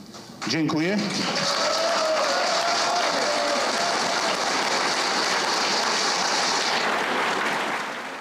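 A crowd claps and cheers loudly.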